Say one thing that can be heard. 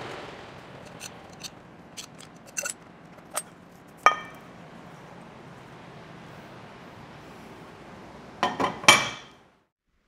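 Metal parts clank as they are handled.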